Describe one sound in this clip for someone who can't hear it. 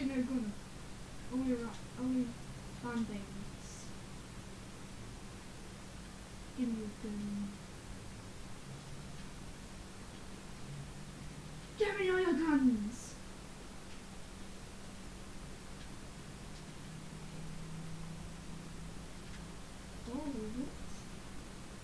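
A young boy talks with animation into a headset microphone.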